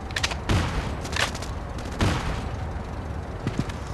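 An assault rifle is reloaded with metallic clicks.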